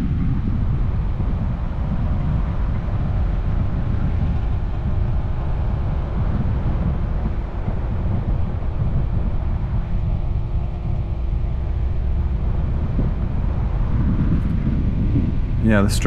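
Wind rumbles loudly against the microphone outdoors.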